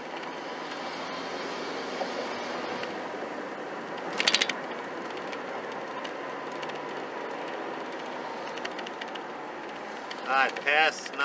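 A car engine hums and revs as the car accelerates and then eases off.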